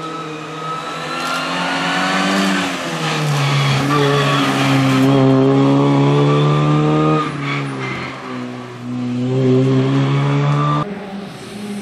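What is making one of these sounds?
A rally car races past at full throttle, shifting gears.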